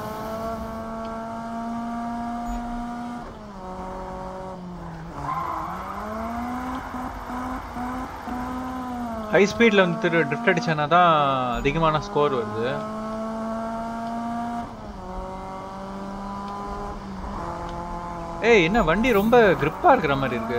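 A car engine roars steadily, rising and falling in pitch as it shifts gears.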